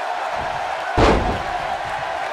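A heavy body slams onto a wrestling ring mat with a thud.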